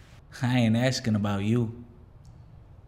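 A man speaks in a strained voice close by.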